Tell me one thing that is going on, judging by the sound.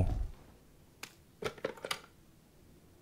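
Buttons on a telephone click as they are pressed.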